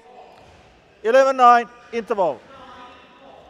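A man announces the score through a loudspeaker in a large echoing hall.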